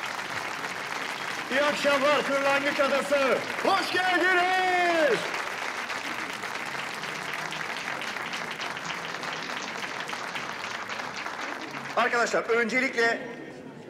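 A crowd claps and cheers.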